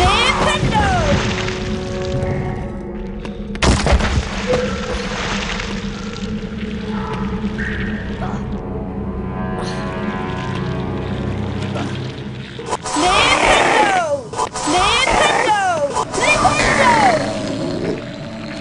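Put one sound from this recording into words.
A magic spell whooshes and crackles with swooping whistling tones.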